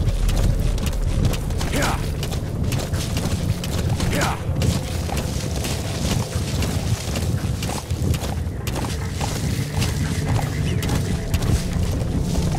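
Hooves thud in a fast gallop on dry ground.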